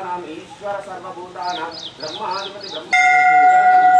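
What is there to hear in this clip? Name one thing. A crowd of men murmurs and chants close by.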